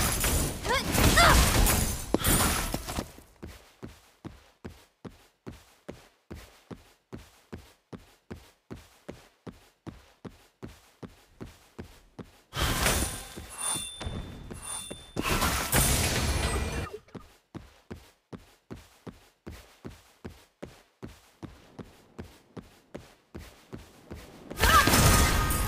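Game battle effects whoosh, clash and burst.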